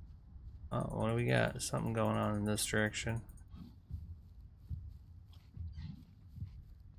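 Footsteps tread softly on the ground.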